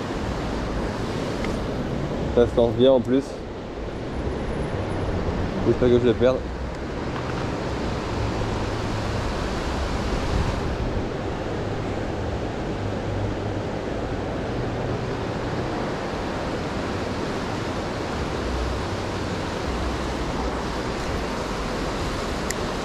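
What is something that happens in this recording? A river rushes steadily below.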